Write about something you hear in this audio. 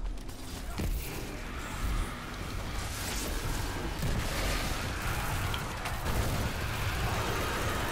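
Gunfire and magical blasts crackle and boom in quick succession.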